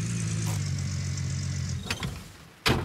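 A truck engine rumbles steadily and then cuts off.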